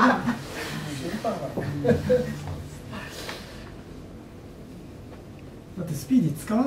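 A middle-aged man speaks cheerfully, laughing now and then.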